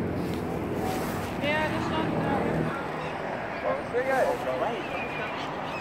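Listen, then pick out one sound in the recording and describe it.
Gulls call nearby.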